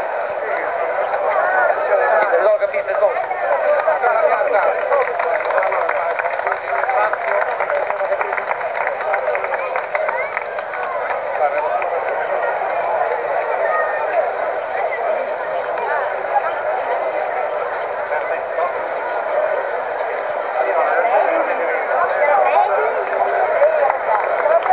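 A crowd of men talk and murmur loudly all around, close by, outdoors.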